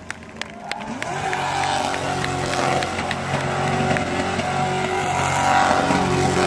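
Car tyres screech as a race car spins on the track.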